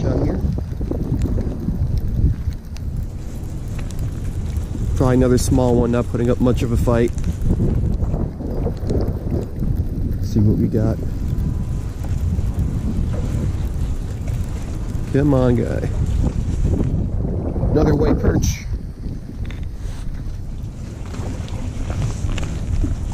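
Wind blows and rumbles steadily outdoors.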